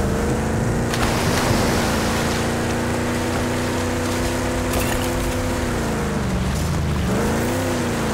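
Water splashes as a vehicle drives through it.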